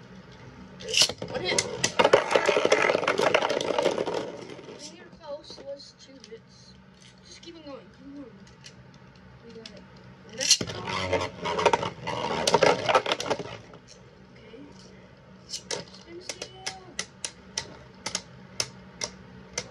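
Spinning tops whir and scrape across a plastic bowl.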